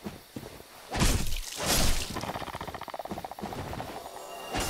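A sword strikes and slashes with heavy impacts.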